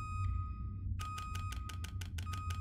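Short electronic blips tick quickly as a game menu selection moves.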